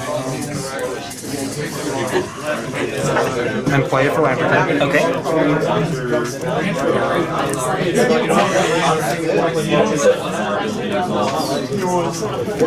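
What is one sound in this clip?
Playing cards are shuffled with soft riffling and flicking.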